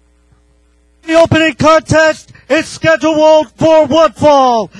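A man announces loudly over a loudspeaker, echoing through a large hall.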